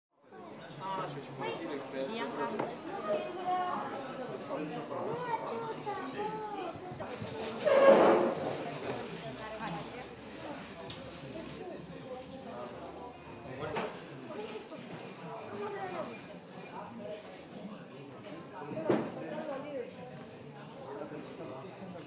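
Children and adults talk and chatter nearby.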